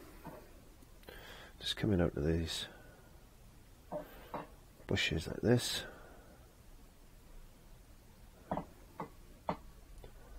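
A brush dabs and scrubs in paint on a palette.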